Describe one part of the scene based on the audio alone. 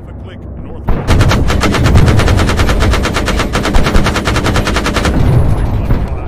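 Rifles and machine guns fire in rapid bursts.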